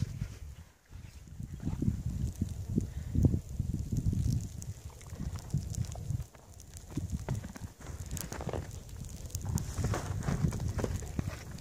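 A horse munches snow.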